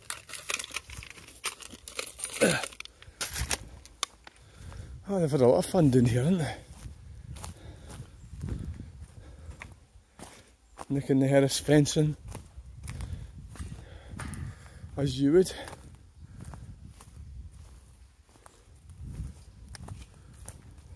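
Footsteps crunch on dry leaves and twigs.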